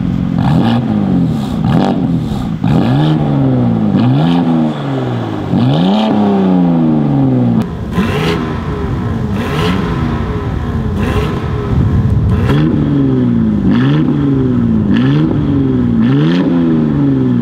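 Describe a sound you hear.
Exhaust pops and crackles sharply between revs.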